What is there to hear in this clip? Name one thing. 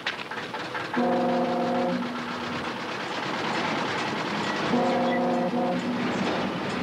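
A steam whistle hoots twice in short blasts.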